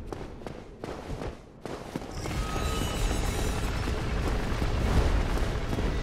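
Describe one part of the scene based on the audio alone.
Armoured footsteps clank on stone as a figure runs.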